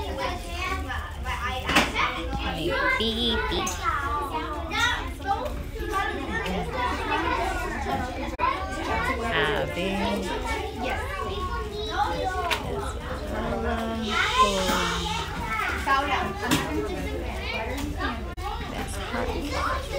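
Many young children chatter and call out at once indoors.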